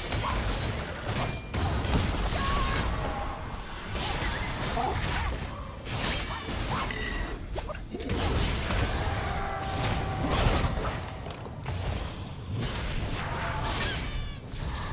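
Spell effects whoosh and burst in a game fight.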